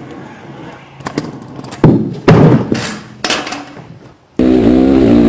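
A skateboard clatters and slams onto hard ground.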